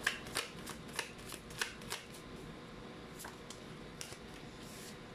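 Playing cards shuffle and slap softly onto a wooden table.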